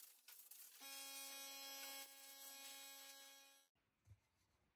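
A power sander whines against a board.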